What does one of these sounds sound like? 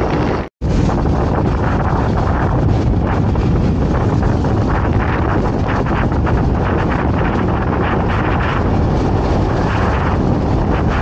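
A motorcycle engine hums steadily up close while riding.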